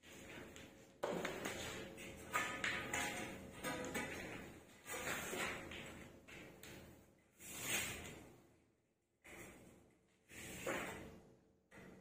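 A long metal strip scrapes and clanks as it is handled.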